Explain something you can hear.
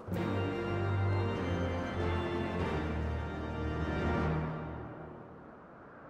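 A short triumphant musical fanfare plays and fades away.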